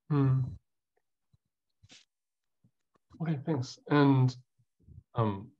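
A young man speaks calmly over an online call, pausing between phrases.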